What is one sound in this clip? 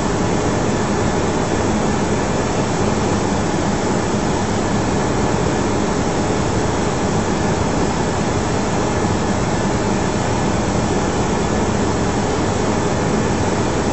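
Jet engines roar steadily in flight.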